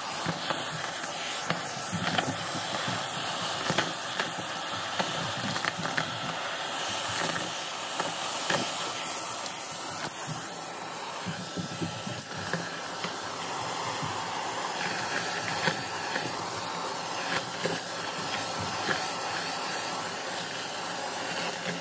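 Confetti rattles and clicks as a vacuum cleaner sucks it up.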